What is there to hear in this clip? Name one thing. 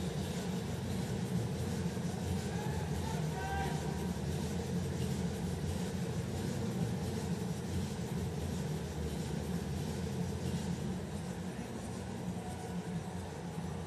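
A large crowd murmurs in a big open stadium.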